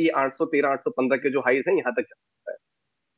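A man speaks briskly into a microphone.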